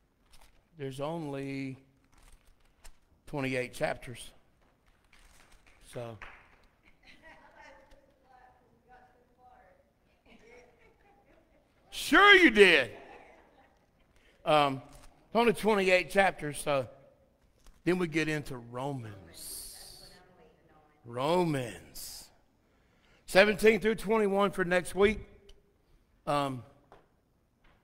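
A man speaks slowly and calmly over a microphone in an echoing hall, with long pauses.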